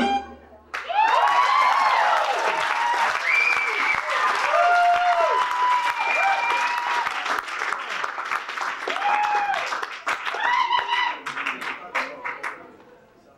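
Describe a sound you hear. Drums and hand drums tap out a quick rhythm.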